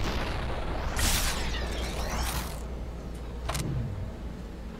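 Gunshots crack in a game.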